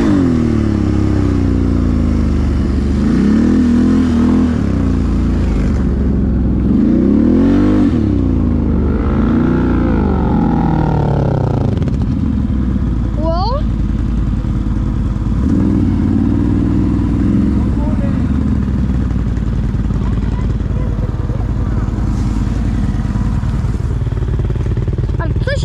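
A quad bike engine revs up and down close by.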